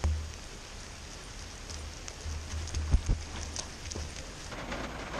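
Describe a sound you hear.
Footsteps crunch on gravel, coming closer.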